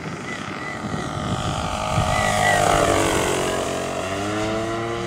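A propeller plane's engine roars as it passes low and close, its pitch dropping as it flies away.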